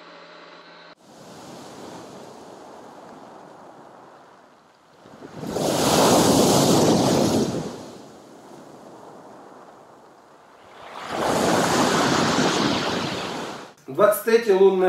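Waves crash onto a pebble beach.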